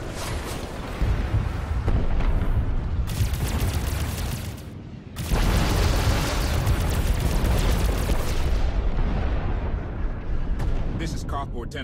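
Loud explosions boom and rumble in quick succession.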